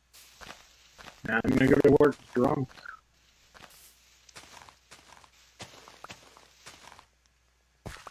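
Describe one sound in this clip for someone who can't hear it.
Leaves rustle and crunch as they are broken.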